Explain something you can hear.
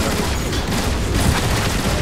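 Blasts explode with a crackling burst.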